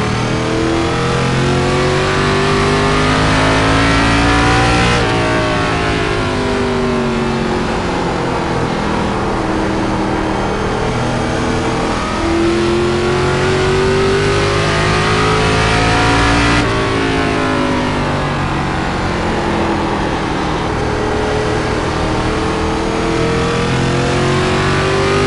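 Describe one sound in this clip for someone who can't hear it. A racing car engine roars, its pitch climbing as it speeds up and dropping sharply as it slows for corners.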